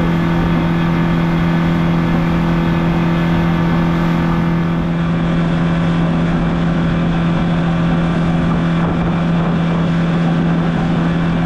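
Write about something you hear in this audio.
Wind blows hard past the microphone.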